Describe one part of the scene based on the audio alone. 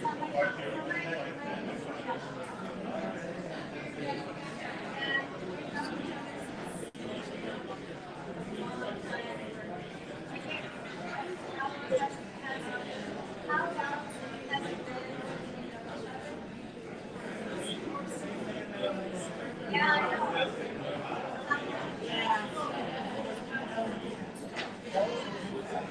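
Several men and women chat at a distance in a room with some echo.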